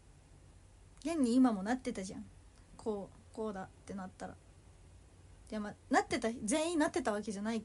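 A young woman speaks close to a microphone, calmly and in short bursts.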